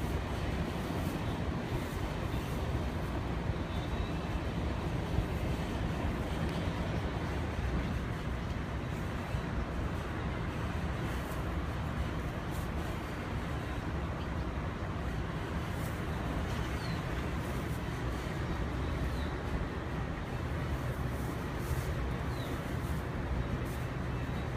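Straw rustles underfoot as a foal shifts its legs.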